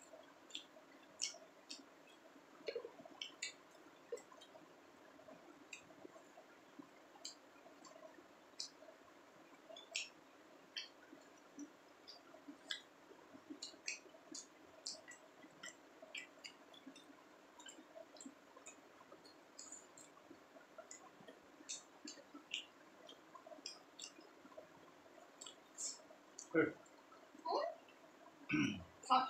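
Fingers mix and scrape food on plates close by.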